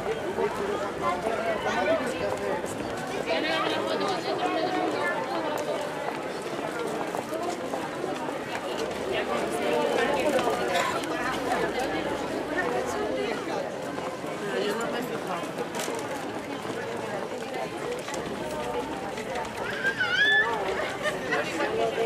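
A crowd of men and women chatter close by outdoors.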